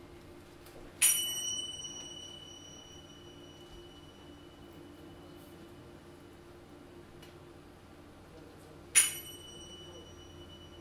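A cymbal is struck sharply and rings on.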